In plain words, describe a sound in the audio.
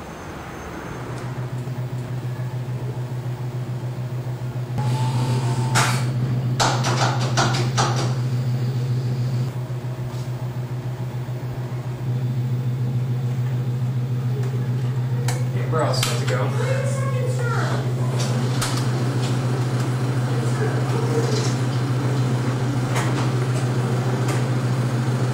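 A film projector hums and whirs steadily.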